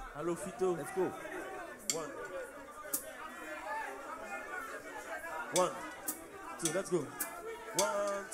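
Hand drums are struck in a lively beat.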